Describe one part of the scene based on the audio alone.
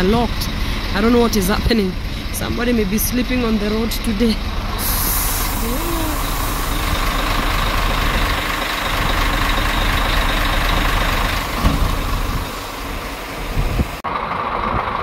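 A truck engine rumbles nearby.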